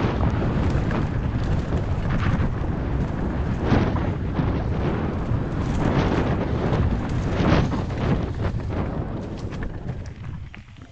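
Bicycle tyres rumble and crunch over a bumpy dirt trail.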